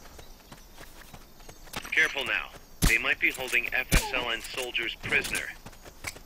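Footsteps patter on dirt as a soldier runs.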